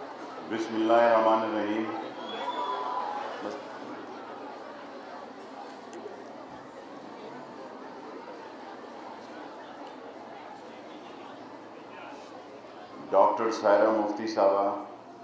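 A man speaks into a microphone over a loudspeaker in a large echoing hall.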